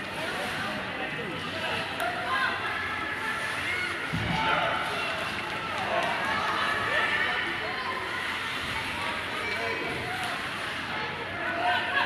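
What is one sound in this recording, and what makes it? A crowd murmurs and calls out in a large echoing arena.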